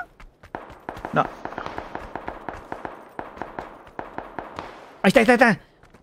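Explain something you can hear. Footsteps thud quickly on dry ground.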